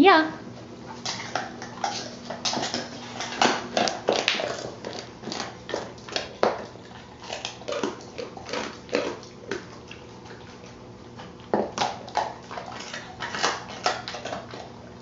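A dog sniffs and chews at a small treat with quick clicks.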